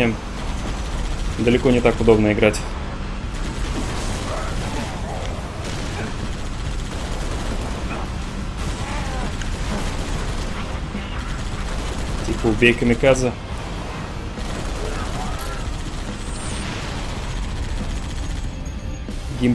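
A heavy machine gun fires rapid bursts.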